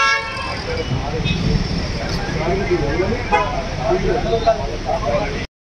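Several men argue loudly outdoors, their voices overlapping.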